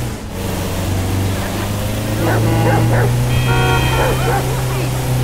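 A van engine hums steadily as it drives.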